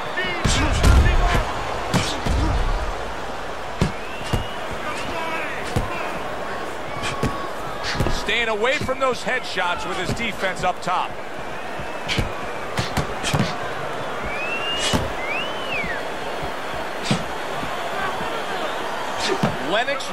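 Punches thud against bodies and gloves.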